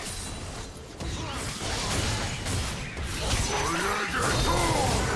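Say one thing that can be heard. Magic spells burst and crackle in a fast fight.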